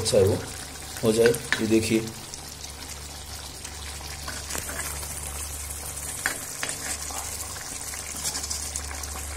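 A metal spoon scrapes and stirs in a pan of thick sauce.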